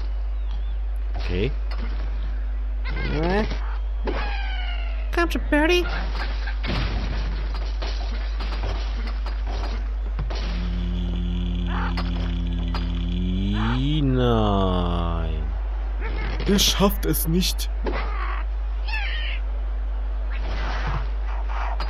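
A cartoon bird squawks as it is flung through the air.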